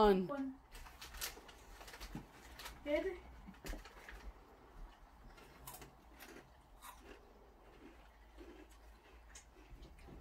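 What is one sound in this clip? A crisp packet crinkles and rustles.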